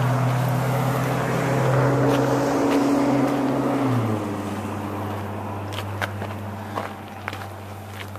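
A motorbike engine hums steadily close by, then drops lower and quieter.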